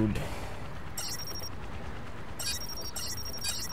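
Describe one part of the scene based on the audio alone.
Short electronic beeps sound as a menu is clicked through.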